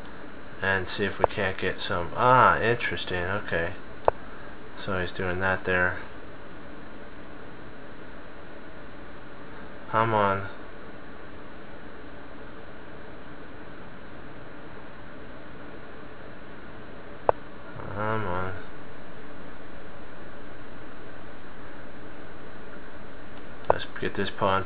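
A middle-aged man talks casually into a nearby microphone, in short bursts.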